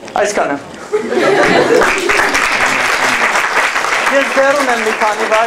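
An audience claps and laughs.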